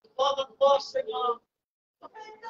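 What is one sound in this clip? A young boy speaks in a high voice close by.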